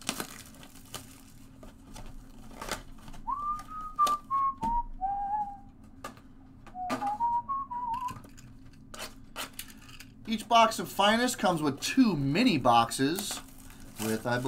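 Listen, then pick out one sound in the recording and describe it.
Plastic-wrapped boxes crinkle and knock as hands handle them.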